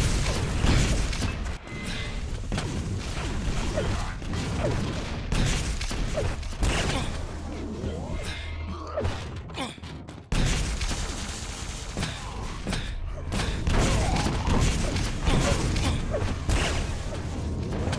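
Energy weapons fire in rapid zapping bursts.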